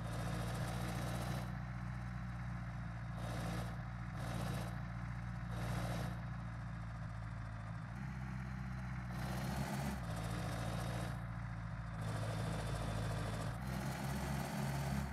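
A heavy truck engine rumbles steadily at low speed.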